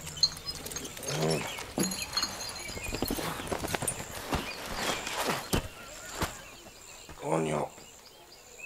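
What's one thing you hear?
A man groans drowsily up close.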